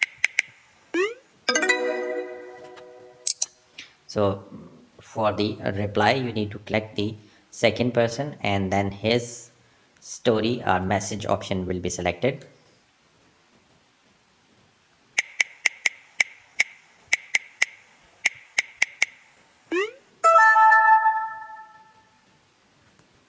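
A phone plays a short chime as a message is sent.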